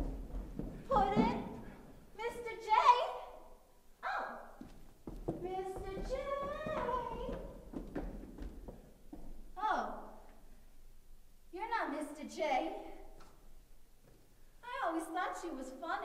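A woman speaks with animation in an echoing hallway.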